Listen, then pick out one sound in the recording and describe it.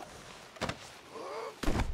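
A horse whinnies nearby.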